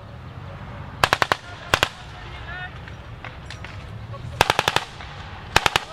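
Gunfire cracks in short, sharp bursts.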